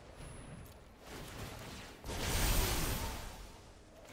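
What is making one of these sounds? A game's magic spell whooshes and bursts with a deep boom.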